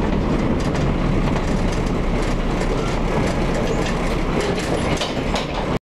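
The bus body rattles and clatters as it moves.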